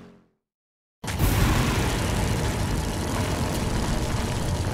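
A tank engine rumbles loudly and steadily.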